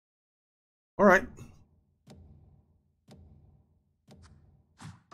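A game countdown beeps once a second.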